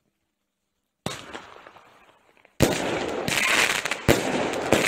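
A firework bursts with a loud bang.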